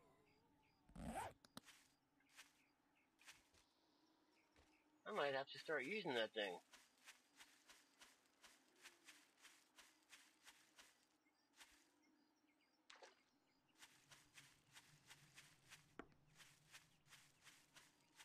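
Footsteps swish through tall grass at a steady walking pace.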